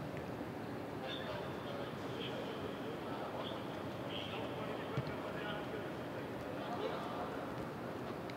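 Young men chat faintly outdoors.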